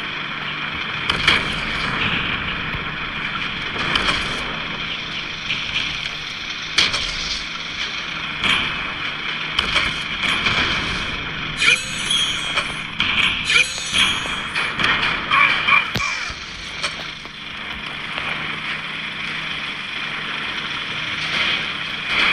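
A tank cannon fires with loud bangs.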